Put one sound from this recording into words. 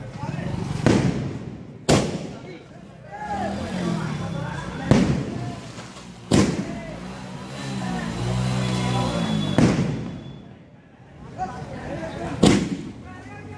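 Firecrackers bang sharply, one at a time.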